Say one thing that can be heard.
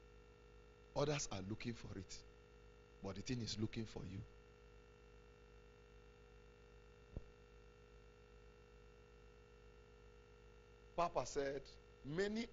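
A man speaks with emphasis through a microphone in short bursts, with pauses between.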